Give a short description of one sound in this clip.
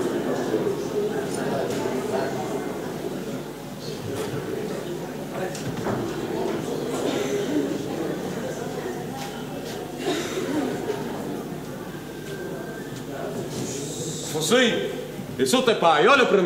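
An audience murmurs and chatters in a large echoing hall.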